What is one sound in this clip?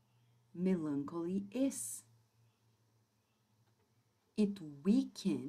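A woman speaks calmly into a close microphone, with pauses.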